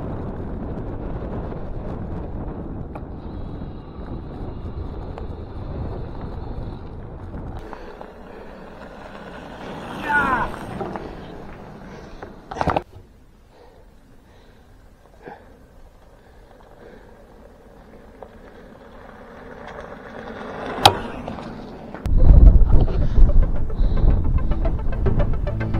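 Bicycle tyres crunch over a gravel track.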